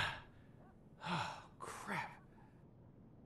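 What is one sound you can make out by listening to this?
A young man mutters under his breath, close by.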